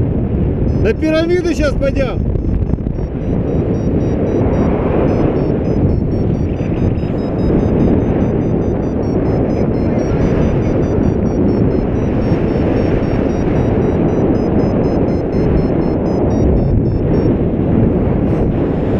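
Wind roars steadily against a microphone in flight.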